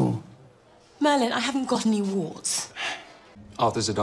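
A woman speaks urgently, close by.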